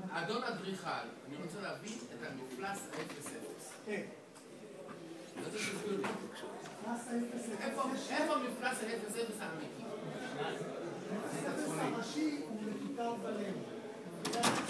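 A man speaks with animation across a large room.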